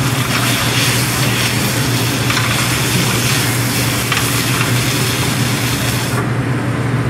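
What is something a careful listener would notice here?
Potatoes sizzle loudly in a hot frying pan.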